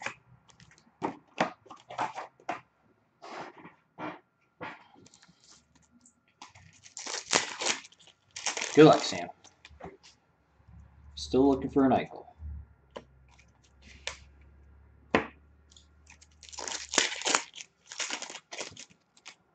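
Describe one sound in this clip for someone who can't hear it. Plastic card packs rustle and crinkle as they are handled.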